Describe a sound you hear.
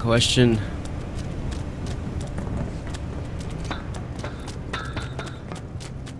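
Footsteps clang quickly on a metal walkway.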